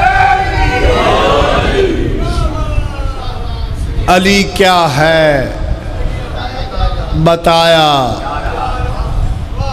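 A crowd of men beat their chests in rhythm.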